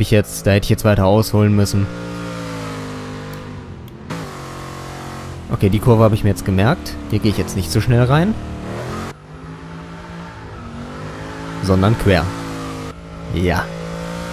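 A car engine roars and revs up and down sharply.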